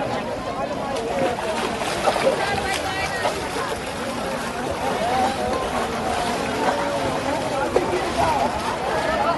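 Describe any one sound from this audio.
Water splashes as people wade through a river.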